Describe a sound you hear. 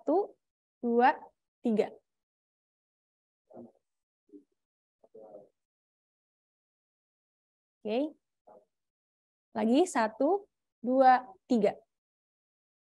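A young woman speaks calmly into a microphone, with pauses.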